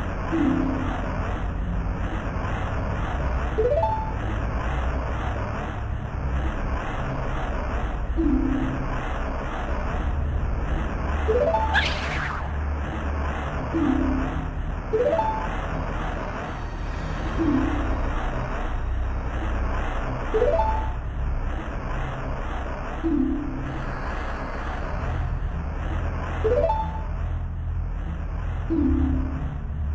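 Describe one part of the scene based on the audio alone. Slow, gloomy music plays with a short rising tune that keeps coming back.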